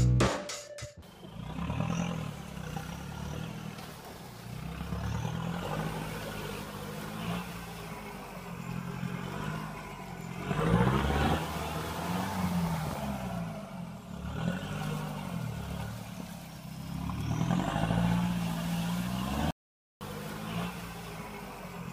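A small toy car's electric motor whines as it climbs over wood chips.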